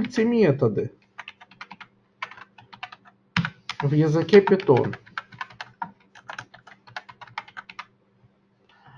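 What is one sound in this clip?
Keys click rapidly on a computer keyboard.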